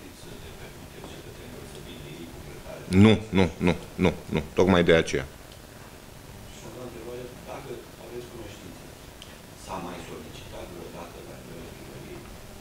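A man speaks calmly into microphones at close range.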